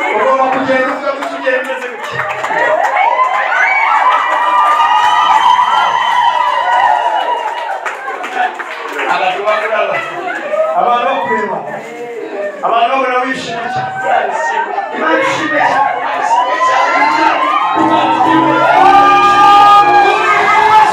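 A crowd sings and shouts loudly.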